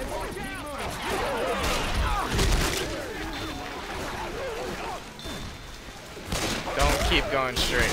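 A pistol fires a few sharp shots.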